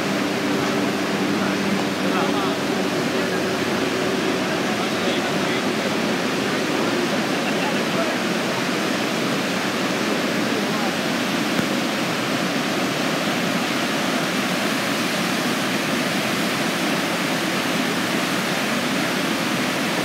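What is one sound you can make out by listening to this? River rapids roar outdoors.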